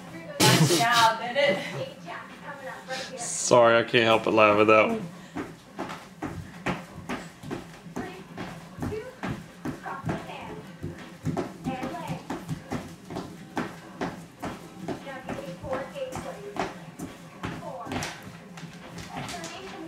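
Footsteps thump on a wooden floor.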